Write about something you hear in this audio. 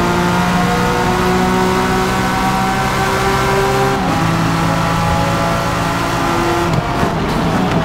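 A race car engine roars loudly at high, steady revs.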